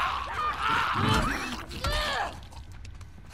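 A dog snarls and growls up close.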